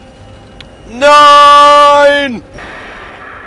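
A large machine blasts with a loud humming burst.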